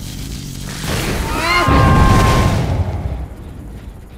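An electric weapon crackles and discharges with a loud burst.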